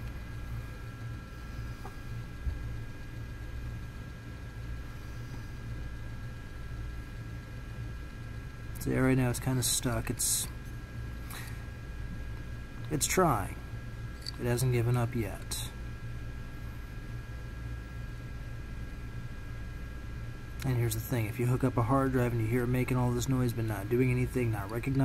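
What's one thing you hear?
A hard drive hums steadily as its disk spins.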